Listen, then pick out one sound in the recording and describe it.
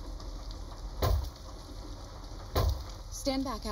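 An elbow thumps hard against a car window.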